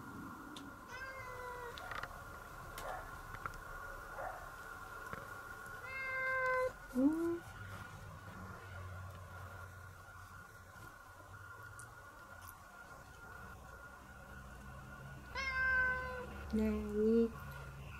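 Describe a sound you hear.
A cat meows loudly close by.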